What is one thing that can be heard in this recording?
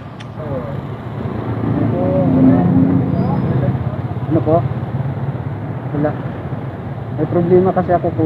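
Traffic hums steadily in the street nearby.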